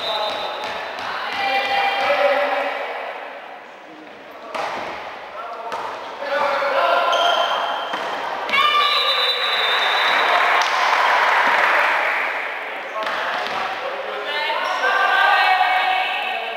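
Young women shout and call out to each other across a large echoing hall.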